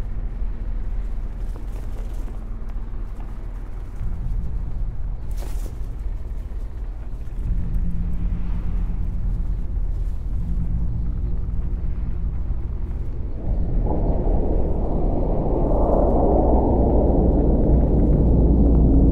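Huge hovering machines hum with a deep, steady drone that grows louder.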